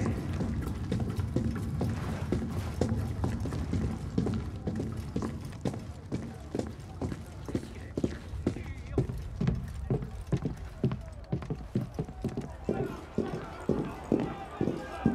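Footsteps thud on wooden stairs and floors.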